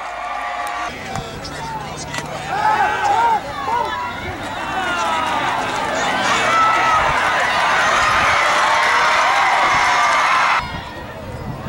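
A crowd cheers in the stands of a large outdoor stadium.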